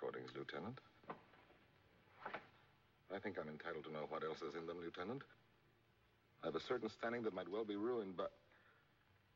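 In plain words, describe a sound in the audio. A man speaks weakly and haltingly, close by.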